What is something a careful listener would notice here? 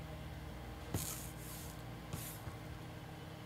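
A card slides in and out of a stiff plastic holder.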